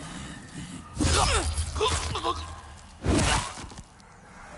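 Heavy blade strikes land with loud, sharp slashing sounds.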